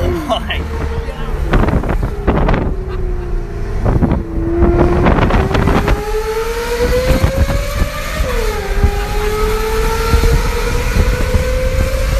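A car engine hums and rises in pitch while driving along a street.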